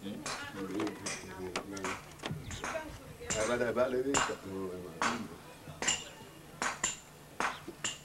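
Pieces of wood knock together as they are laid down by hand.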